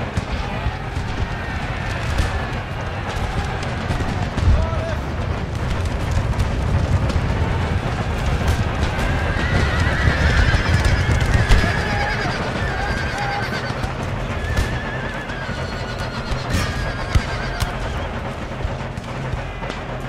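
Muskets fire in scattered sharp cracks.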